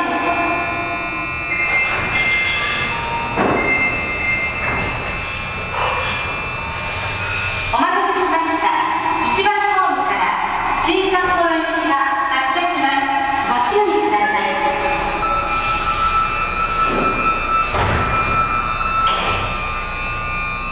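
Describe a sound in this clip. A subway train rolls into an echoing underground station with a rising electric whine.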